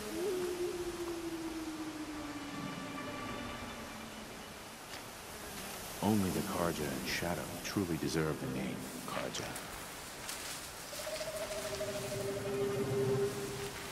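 Tall grass rustles as someone pushes through it.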